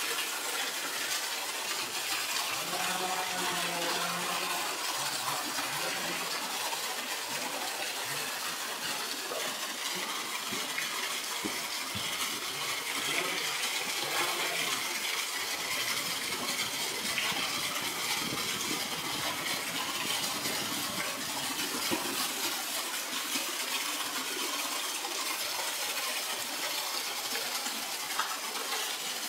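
Water gushes and splashes steadily into a pool.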